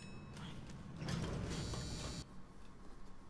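An elevator door slides open with a rumble.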